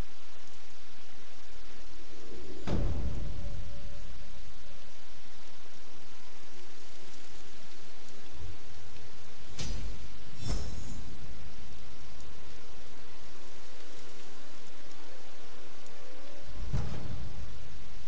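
A campfire crackles steadily.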